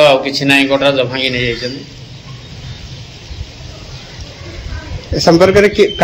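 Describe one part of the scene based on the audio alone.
An elderly man speaks calmly close to the microphone.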